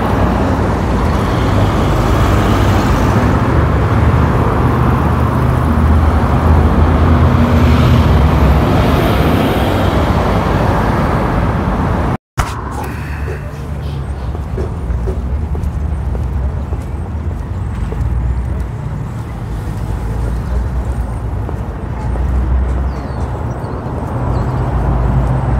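Cars and trucks drive past steadily on a busy road nearby.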